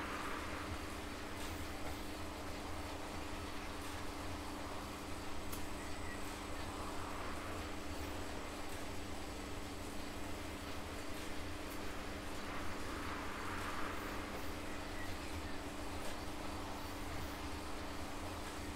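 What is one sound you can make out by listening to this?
An indoor bike trainer whirs steadily as a man pedals.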